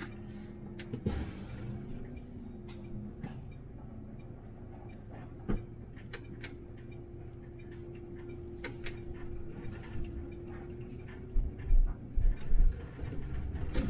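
A city bus pulls away and drives along a road.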